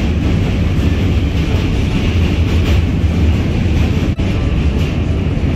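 A train rumbles steadily along, heard from inside a carriage.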